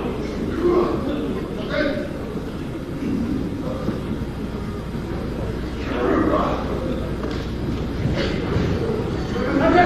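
Bodies thud onto a wrestling ring mat.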